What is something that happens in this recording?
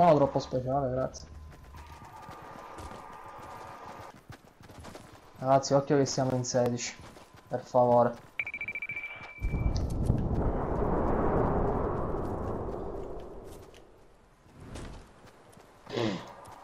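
Footsteps patter quickly over grass.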